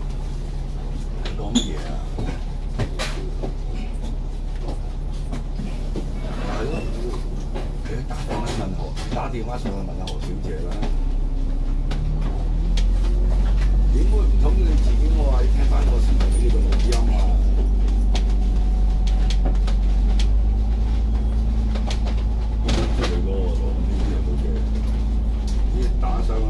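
Traffic hums along a busy road nearby.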